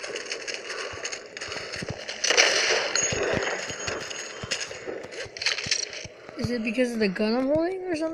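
A gun fires single shots.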